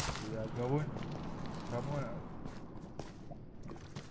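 Blocks crack and break as they are dug out.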